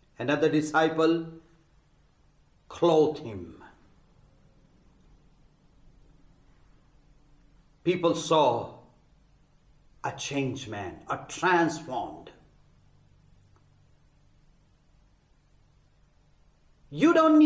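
A man speaks calmly and deliberately into a close microphone, with long pauses.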